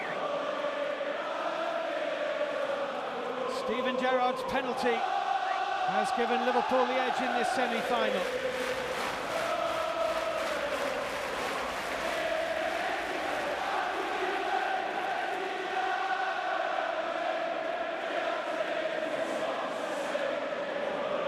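A large stadium crowd sings together loudly, echoing through the open air.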